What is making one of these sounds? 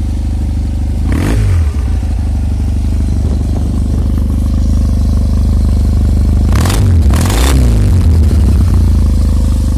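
A motorcycle engine revs sharply a few times and drops back to idle.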